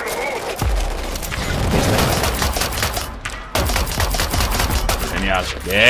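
Gunshots fire in rapid bursts with loud booms.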